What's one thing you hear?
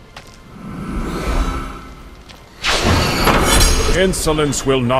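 A magical spell bursts with a shimmering whoosh.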